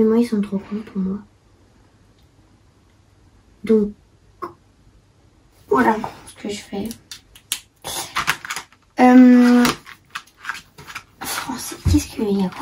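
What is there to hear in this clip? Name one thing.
A young girl talks casually, close by.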